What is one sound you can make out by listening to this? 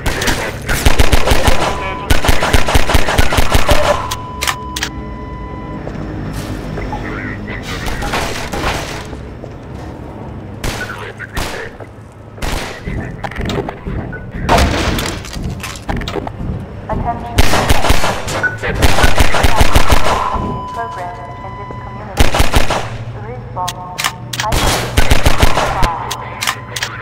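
A pistol fires rapid, sharp shots in bursts.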